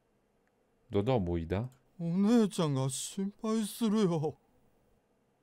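A man asks worried questions in a raised voice.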